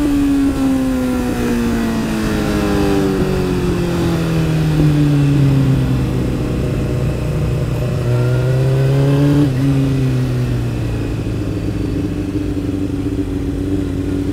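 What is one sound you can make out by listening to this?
A motorcycle engine hums, its pitch falling as it slows, then rising briefly before settling low.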